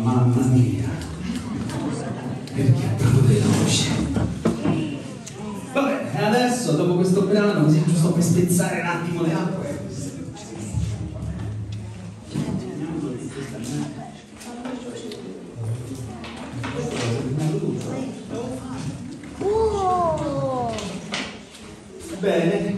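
A man speaks with animation into a microphone over a loudspeaker, in an echoing stone room.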